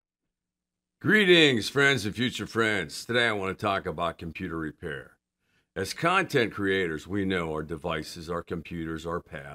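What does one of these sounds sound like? An older man speaks calmly and clearly into a microphone, close by.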